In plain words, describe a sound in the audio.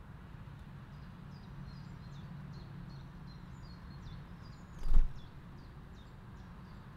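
A small bird chirps and twitters outdoors.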